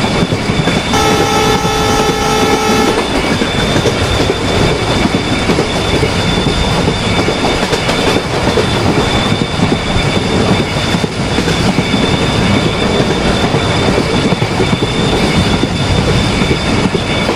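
An electric train rumbles steadily along the rails at speed.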